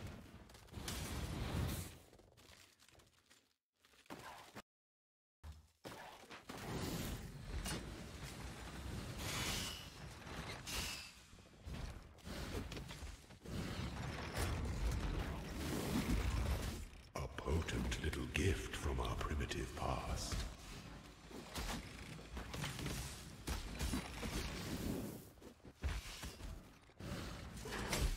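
Magic spell effects whoosh and crackle in a video game.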